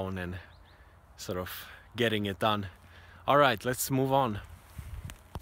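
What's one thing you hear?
A young man speaks calmly and cheerfully close by, outdoors.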